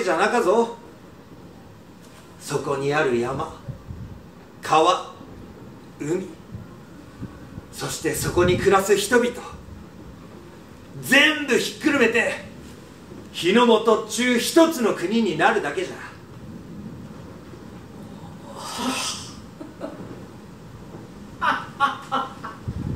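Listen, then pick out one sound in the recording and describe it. A man speaks with animation in a room with a slight echo, pausing between phrases.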